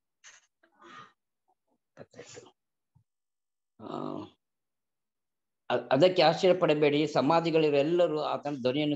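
A man speaks calmly into a microphone, close up.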